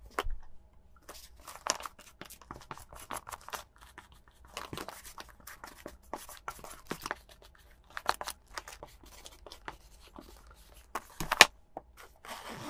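A lint roller rolls and crackles over a fabric handbag.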